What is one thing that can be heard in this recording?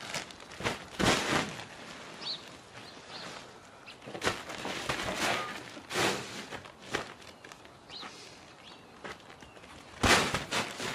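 A ram butts into a plastic-wrapped bundle with loud thumps.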